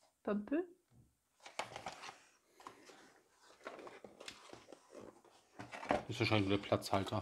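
Cardboard boxes scrape and rustle.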